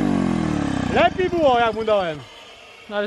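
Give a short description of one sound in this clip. A small motorbike engine sputters and cuts out.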